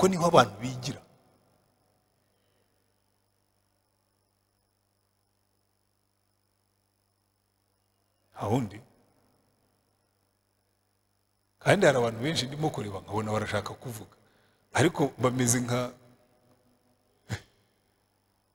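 A middle-aged man speaks calmly into a microphone, in bursts with long pauses.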